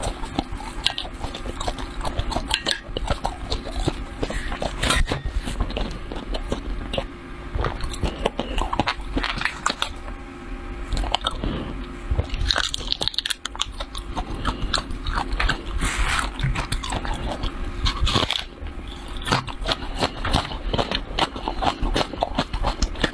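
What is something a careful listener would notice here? A metal spoon scrapes and stirs through dry crunchy chili flakes close to a microphone.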